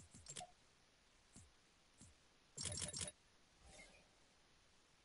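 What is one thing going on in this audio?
Game menu clicks and chimes sound in quick bursts.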